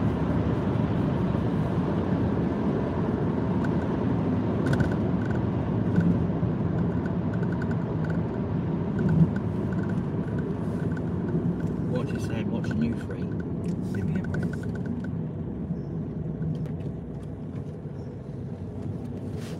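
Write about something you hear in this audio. A car's engine and tyres rumble steadily along a road, slowly quietening as it slows down.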